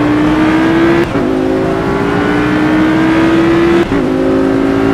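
A gear shift clicks sharply twice.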